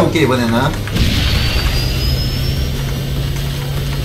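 A racing game engine hums steadily with a rising whine.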